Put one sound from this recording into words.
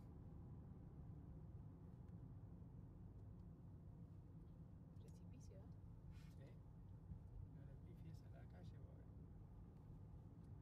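Tyres roll steadily over a smooth road.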